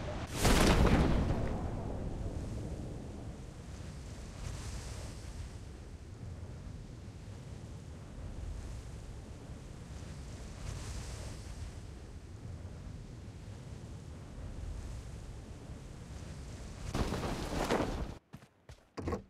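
Wind rushes steadily past while a parachute descends.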